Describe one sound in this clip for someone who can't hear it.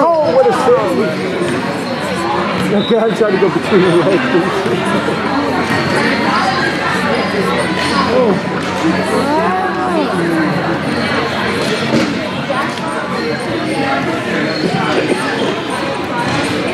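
Many young women shout and call out across a large echoing hall.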